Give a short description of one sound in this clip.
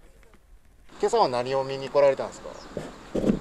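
A boy answers a question loudly and eagerly, close by.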